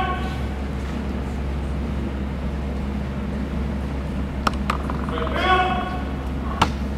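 A young man shouts drill commands in a large echoing hall.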